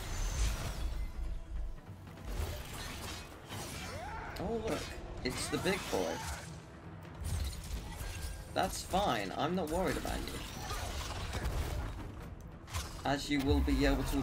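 Magic blasts crackle and whoosh in a fight.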